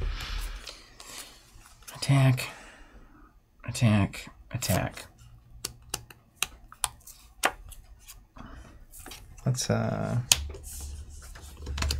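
Game cards click and shuffle on a table.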